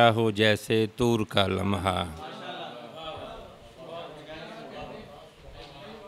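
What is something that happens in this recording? A middle-aged man speaks loudly and slowly into a microphone.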